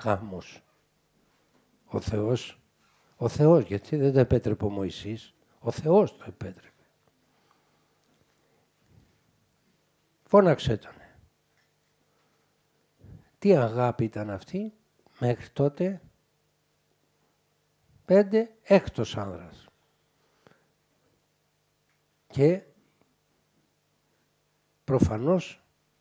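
An elderly man speaks calmly into a close microphone, with long pauses.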